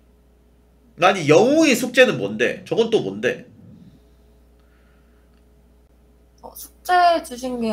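A young man speaks animatedly into a microphone.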